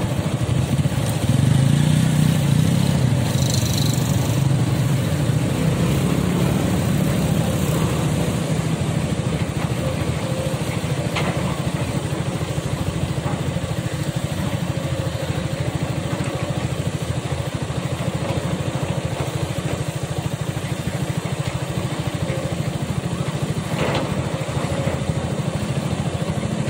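Water rushes over rocks in a river.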